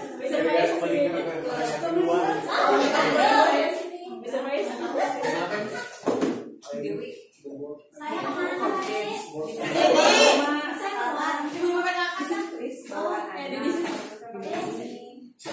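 Several women and men chatter at once in a room.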